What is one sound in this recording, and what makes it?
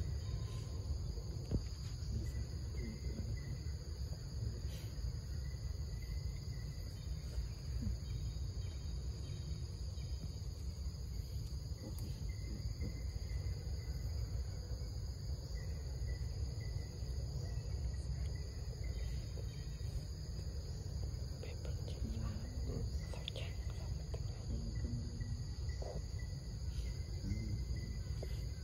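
A baby monkey suckles softly at close range.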